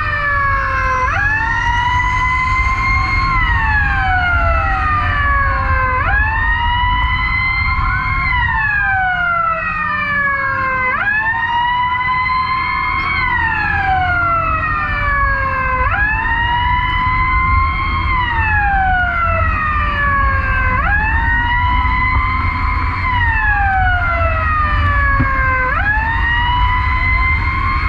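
A siren wails close by, rising and falling in a slow repeating cycle.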